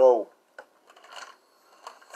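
A man gulps a drink from a bottle.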